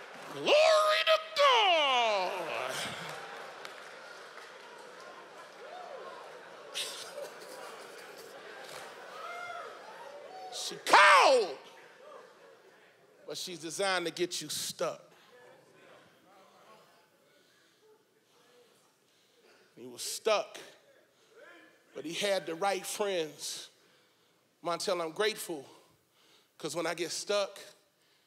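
A man speaks with animation into a microphone, heard over loudspeakers in a large hall.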